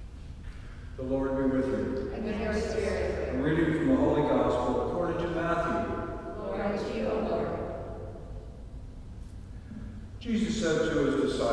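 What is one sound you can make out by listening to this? A man sings over a loudspeaker in a large echoing hall.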